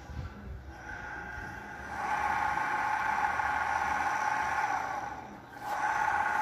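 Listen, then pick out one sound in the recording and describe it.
An electric friction motor whirs as its roller spins against a bicycle tyre, speeding up and slowing down.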